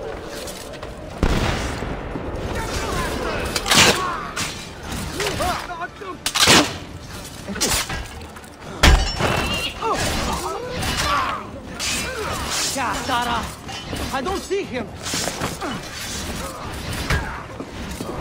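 Metal blades clash and clang in a fight.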